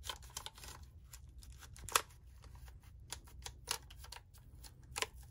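A cotton swab scrubs and scratches against plastic keys in short bursts.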